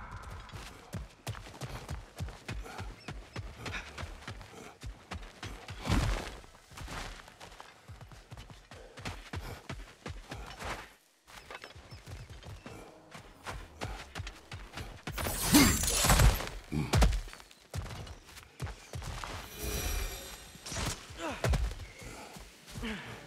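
Heavy footsteps crunch on rocky ground.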